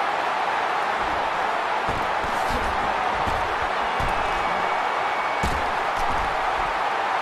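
Football players' pads thud as the players collide.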